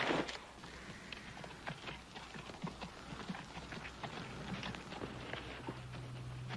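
A horse's hooves clop on dry ground as it walks closer.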